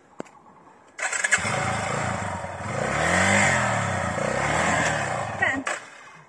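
A motorcycle engine roars and revs up close.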